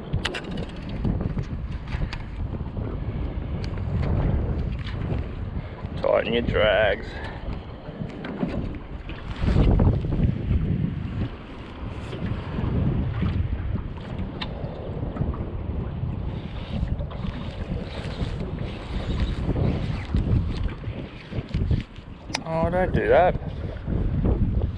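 A fishing reel whirs and clicks as its handle is wound.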